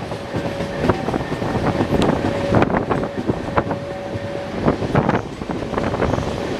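A passenger train clatters over the rails at speed, heard from an open window.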